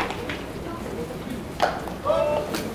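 A baseball smacks into a leather glove.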